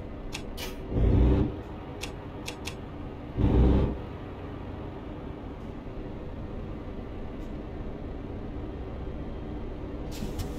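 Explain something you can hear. A heavy diesel truck engine runs as the truck drives slowly.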